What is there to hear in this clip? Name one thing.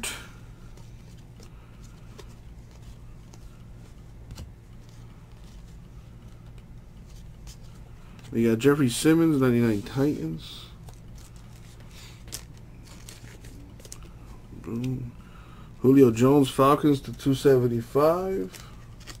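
Glossy cards softly rustle and slide against each other.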